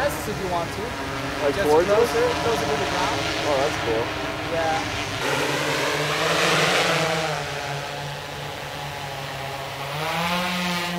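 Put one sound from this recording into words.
A rocket engine roars with a steady hiss as it descends and lands.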